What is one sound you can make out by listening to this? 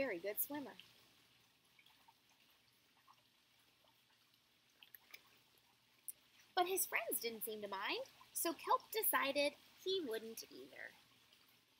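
A young woman reads aloud expressively, close by.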